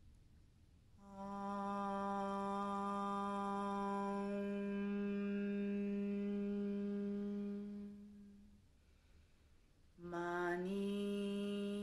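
A young woman chants a long, steady low hum.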